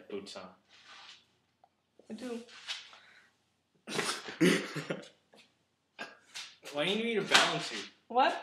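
A teenage boy talks and laughs.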